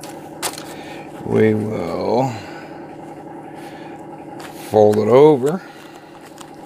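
Aluminium foil crinkles as it is handled.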